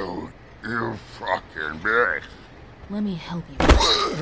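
A man groans and speaks hoarsely, close by.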